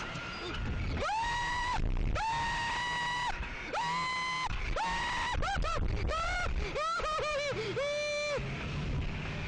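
A man screams loudly in a high pitch, close by.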